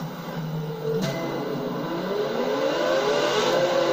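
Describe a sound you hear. A race car engine revs up, rising in pitch.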